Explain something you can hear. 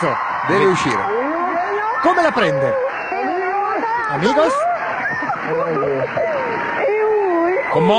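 A young man talks loudly and with animation, close by.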